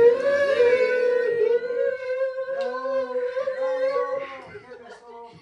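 Young women sing together loudly through a microphone and loudspeaker.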